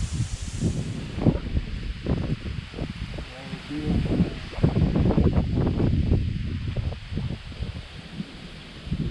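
A man talks casually close by.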